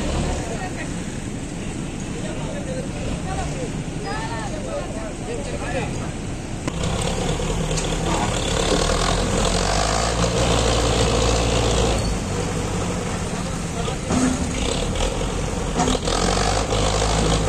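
Gravel crunches under a heavy roller.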